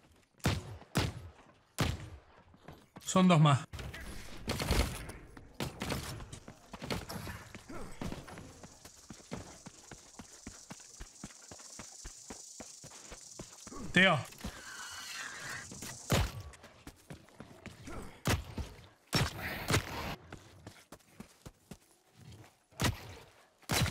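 Gunshots ring out in short bursts.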